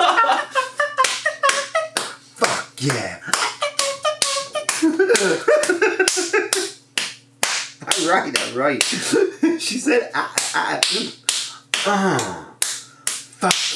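A man laughs heartily close to a microphone.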